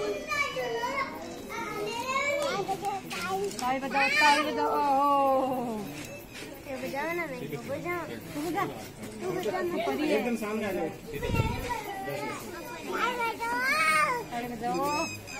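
A group of women sing together nearby.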